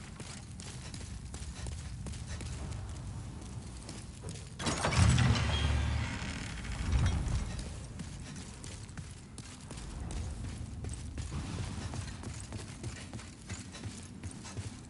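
Armoured footsteps clank.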